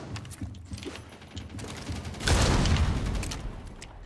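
A rifle rattles as it is handled.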